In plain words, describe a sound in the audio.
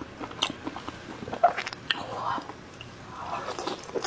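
A woman bites into soft food with a wet slurp.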